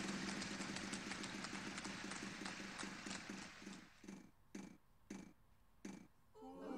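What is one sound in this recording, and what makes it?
A prize wheel ticks rapidly, then slows down to a stop.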